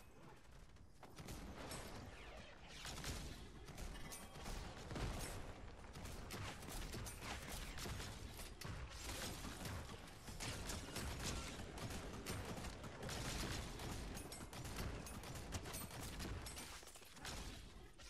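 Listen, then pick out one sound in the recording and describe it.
Rapid gunfire and blasts crackle from a video game.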